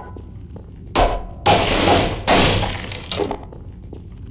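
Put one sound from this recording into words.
Wooden boards crack and splinter as they are smashed.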